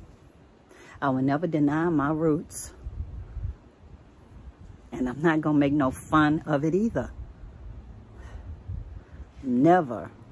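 An elderly woman speaks close to the microphone, slowly and with feeling.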